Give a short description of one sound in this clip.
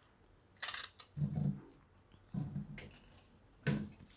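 Pieces of banana thud softly into a metal pot.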